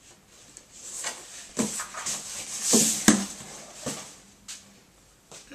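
A wooden piece rustles and knocks as it is handled.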